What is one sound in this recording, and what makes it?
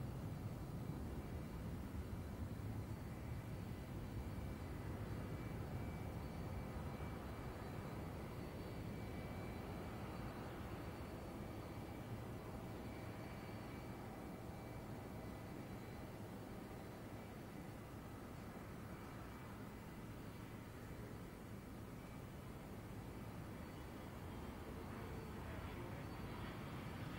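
A jet airliner roars loudly as it takes off and climbs away, its engine noise slowly fading.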